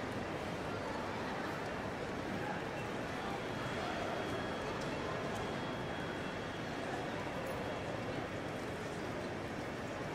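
Footsteps echo faintly across a hard floor.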